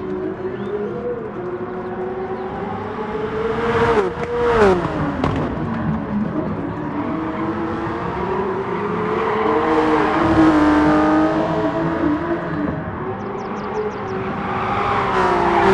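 Racing car engines roar at high revs and shift through gears.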